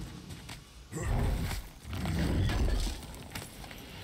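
A heavy stone lid grinds and thuds open.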